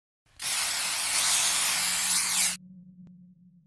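A loud blast roars and hisses, then cuts off abruptly.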